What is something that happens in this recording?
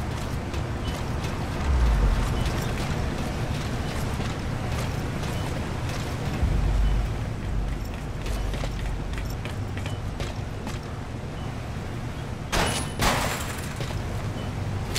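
Soft footsteps shuffle on a hard floor.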